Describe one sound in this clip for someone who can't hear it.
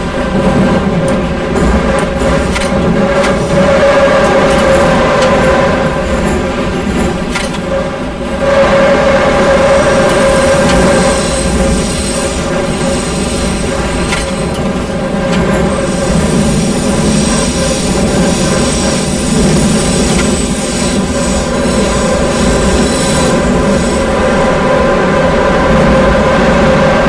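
A subway train rumbles and hums steadily through a tunnel.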